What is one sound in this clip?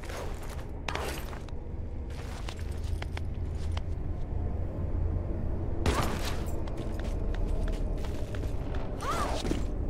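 Hands grip and scrape along a stone ledge.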